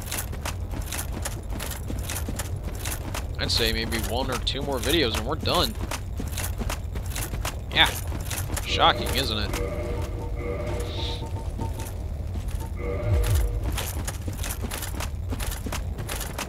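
Heavy armoured footsteps thud steadily on stone.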